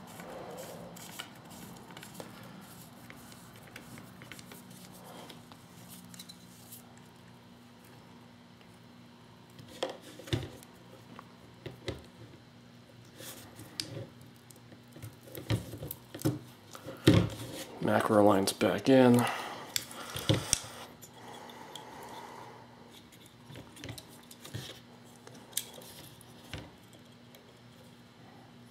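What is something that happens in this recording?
Plastic and metal parts of a paintball marker click and knock as hands take it apart.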